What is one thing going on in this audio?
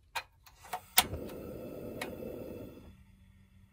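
A gas burner on a portable cassette stove catches with a whoosh and hisses.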